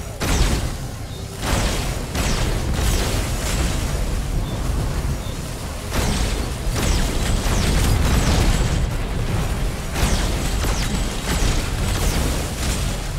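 Guns fire rapidly with blasts and explosions.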